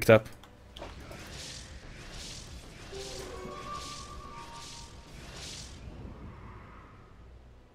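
Magic spells crackle and whoosh in a fantasy battle.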